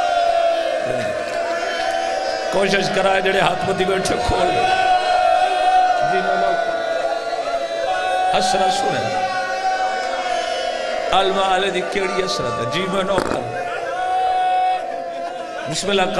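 A man recites passionately into a microphone, heard through a loudspeaker in an echoing hall.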